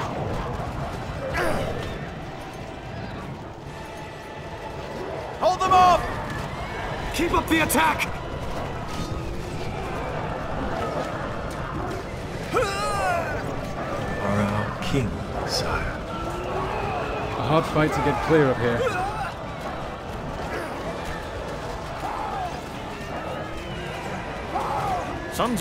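A game battle rages with a clamour of soldiers shouting.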